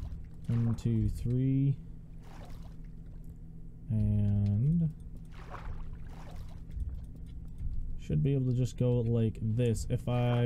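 Water splashes softly with swimming strokes.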